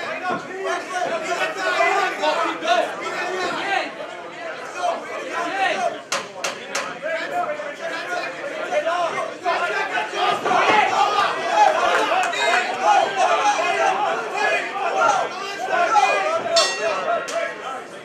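Gloves thud against bodies in quick punches.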